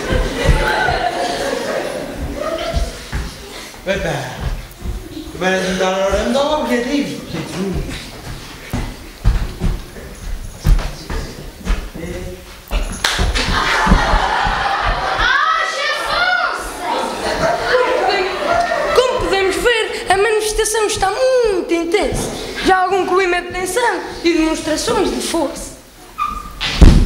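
A young man raps into a microphone, heard through loudspeakers in a large hall.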